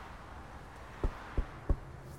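Knocks tap on a car window.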